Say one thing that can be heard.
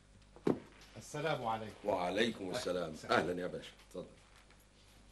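A second man answers in a calm voice nearby.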